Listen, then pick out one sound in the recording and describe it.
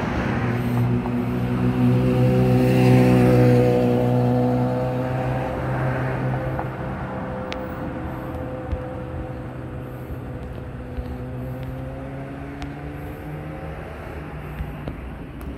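A police siren drones nearby and slowly winds down and fades.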